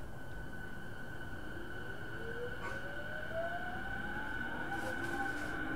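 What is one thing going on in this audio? An electric train's motor whines, rising in pitch as the train speeds up.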